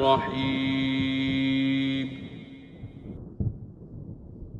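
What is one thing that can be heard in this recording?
Thunder rumbles loudly.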